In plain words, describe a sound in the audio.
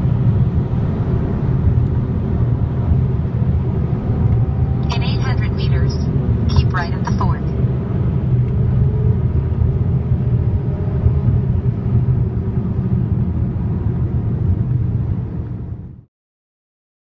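A motorcycle engine roars steadily at speed.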